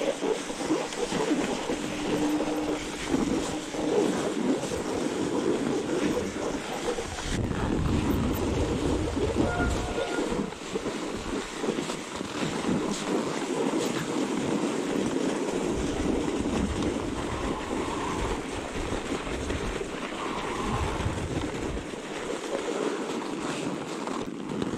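Bike tyres crunch and hiss over packed snow.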